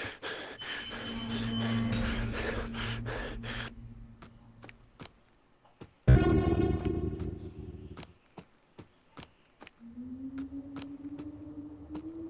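Footsteps crunch steadily on gravelly ground.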